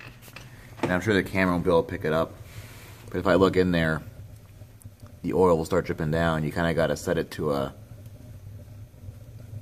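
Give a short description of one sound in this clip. A gas burner roars steadily with a low rumble.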